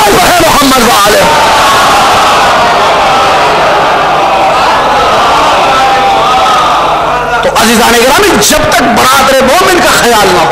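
A man speaks loudly and with feeling through a microphone and loudspeaker.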